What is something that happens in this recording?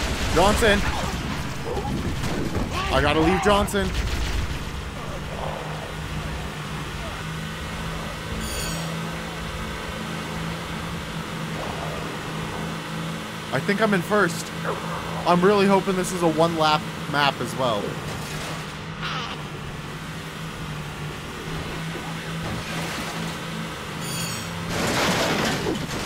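A small vehicle's engine hums steadily as it drives along.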